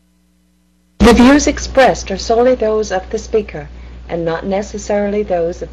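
A middle-aged man speaks with animation through a webcam microphone.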